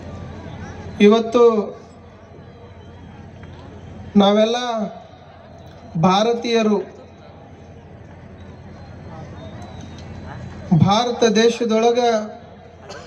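A man chants loudly through a microphone and loudspeaker, in short phrases with pauses between.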